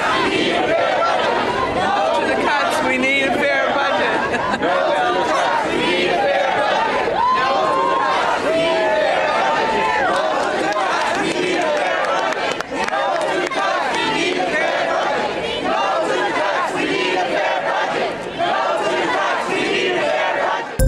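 A large outdoor crowd of protesters chants and cheers loudly.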